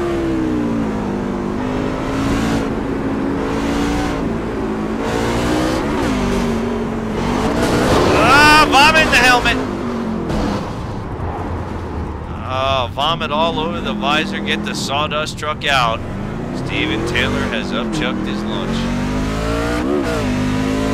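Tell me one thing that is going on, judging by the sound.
A race car engine roars, its pitch rising and falling as it shifts.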